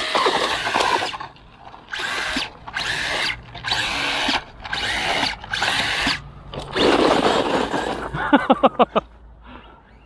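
Toy car tyres scrape and spin on loose gravel.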